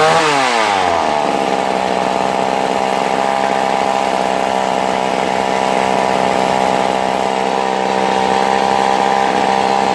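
A small chainsaw engine idles steadily with a rough buzz.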